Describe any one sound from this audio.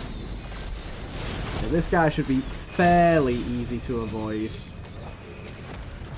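Magic blasts crackle and thud as a battle rages.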